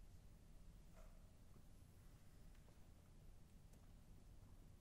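A piano bench clicks and creaks as it is adjusted.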